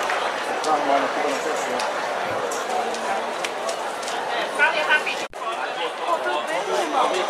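A marching band plays brass instruments loudly outdoors.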